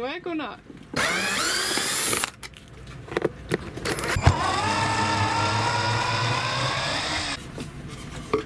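A cordless drill whirs as it drives screws.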